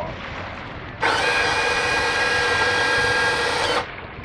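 An electric motor whirs steadily as an outboard engine tilts, then stops.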